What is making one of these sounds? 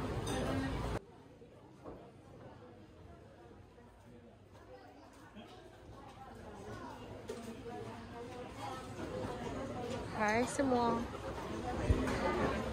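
Men and women chat quietly in the background.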